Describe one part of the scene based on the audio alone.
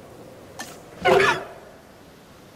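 A small dinosaur lets out a short, shrill squawk.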